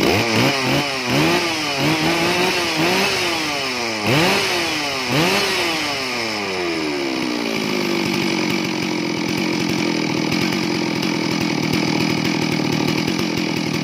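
A chainsaw engine revs up and down in sharp bursts, then settles into a steady idle.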